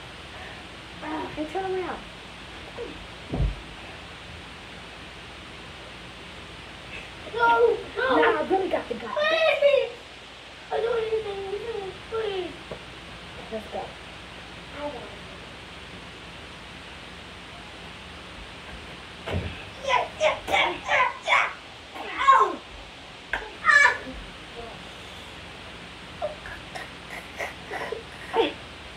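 A teenage boy talks and shouts with animation close by.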